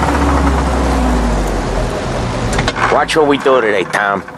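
A car engine rumbles low.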